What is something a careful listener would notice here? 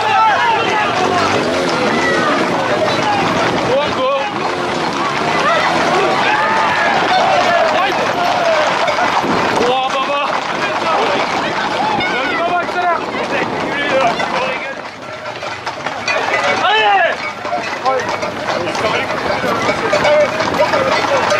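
Horses' hooves clatter on a road.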